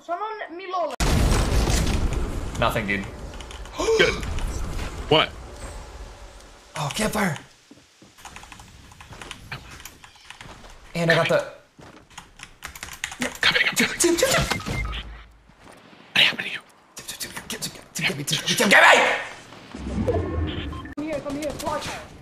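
A young man talks excitedly into a microphone, close by.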